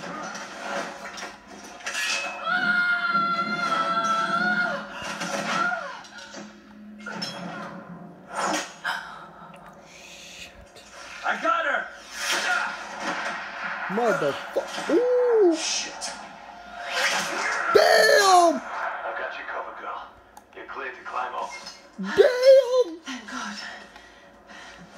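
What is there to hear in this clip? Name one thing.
Game sounds play from a television in a room.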